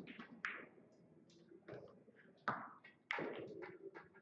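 Billiard balls click against each other and knock into the cushions.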